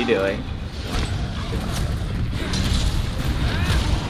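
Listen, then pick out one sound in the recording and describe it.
A heavy blade slashes and clangs against a monster's hide.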